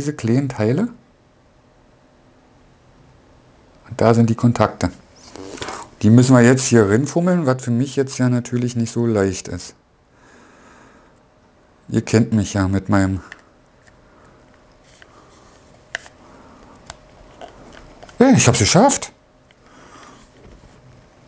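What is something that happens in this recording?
Small plastic parts click as they are handled up close.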